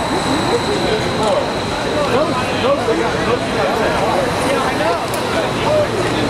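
A tram rolls up slowly and comes to a stop.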